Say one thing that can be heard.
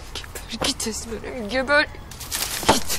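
A young woman sobs close by.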